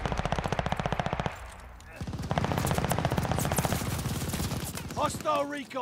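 A rifle fires rapid bursts of automatic shots.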